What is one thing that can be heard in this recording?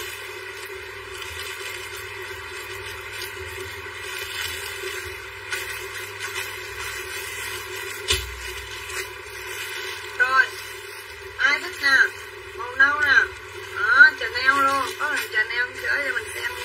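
Plastic wrapping crinkles as clothes are handled.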